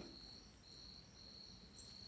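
A spoon stirs and scrapes in a bowl.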